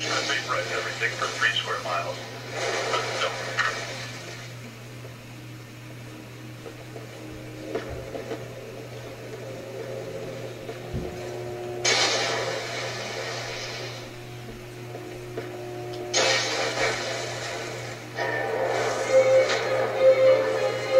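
A video game's energy beam crackles and roars in bursts.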